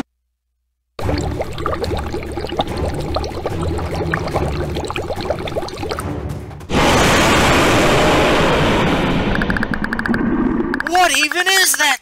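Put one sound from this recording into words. A huge monster rumbles and roars as it rises.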